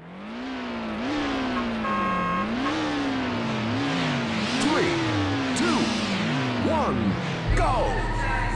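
A car engine revs up and down repeatedly.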